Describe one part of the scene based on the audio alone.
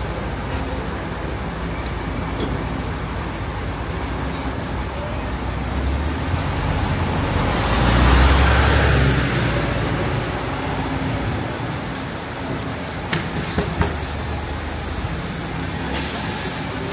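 A bus engine hums steadily close by.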